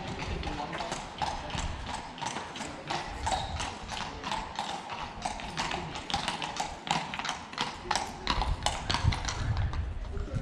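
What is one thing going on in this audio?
A horse's hooves clop steadily on cobblestones close by.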